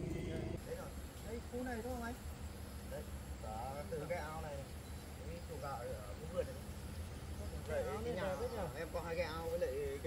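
A man talks at a distance outdoors.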